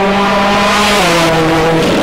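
A turbocharged four-cylinder rally car's engine drops in pitch as it shifts up a gear.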